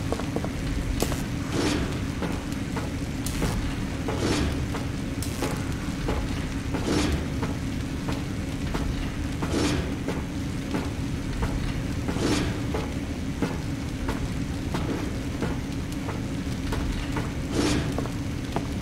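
Hands and feet clank on metal ladder rungs in a slow, even rhythm.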